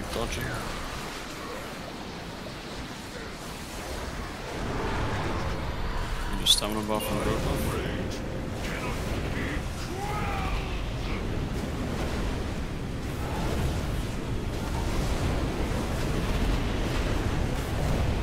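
Magical spell effects whoosh, crackle and boom without pause.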